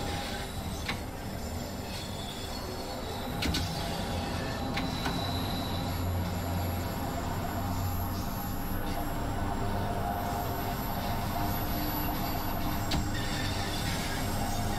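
A train rumbles steadily through a tunnel.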